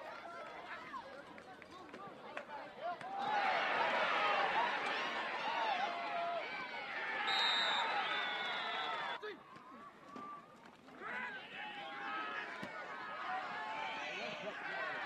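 Young men shout and call out outdoors, loudest for a few seconds in the middle.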